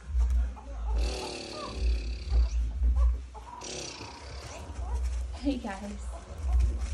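Puppies whimper and whine softly.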